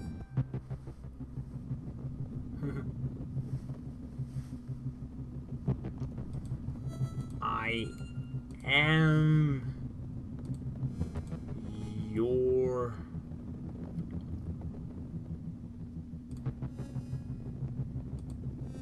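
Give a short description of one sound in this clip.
Electronic game music plays steadily with a low pulsing beat.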